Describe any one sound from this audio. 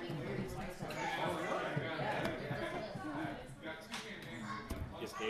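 Playing cards slide and tap on a soft mat.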